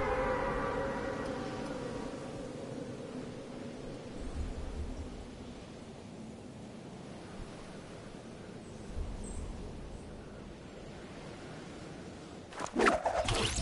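Wind rushes past a game character diving through the air.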